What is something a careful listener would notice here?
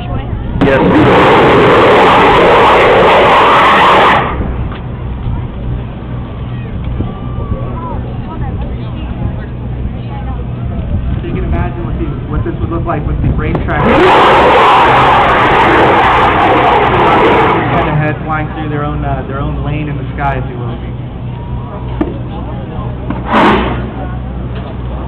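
An aircraft engine drones overhead, rising and falling as it passes.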